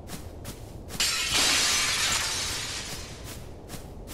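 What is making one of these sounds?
Crystal shatters with a loud, hissing crash that slowly fades.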